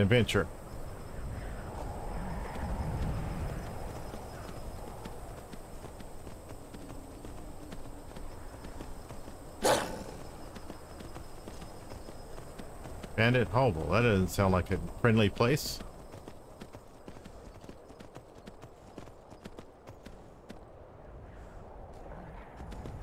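A horse's hooves crunch steadily through snow.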